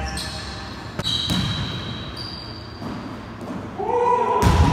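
A basketball thuds against the floor.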